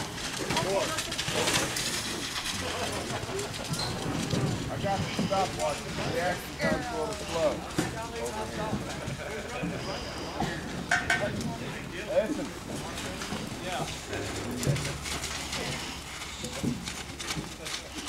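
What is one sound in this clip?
Men call out and talk in the distance.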